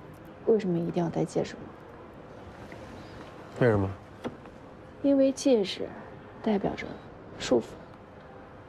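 A young woman speaks calmly and questioningly, close by.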